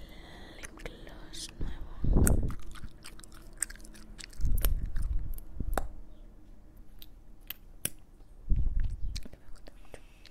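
A plastic lip gloss wand clicks and scrapes inside its tube.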